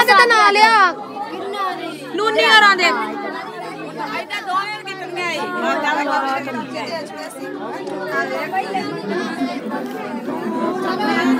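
Women sing loudly together close by.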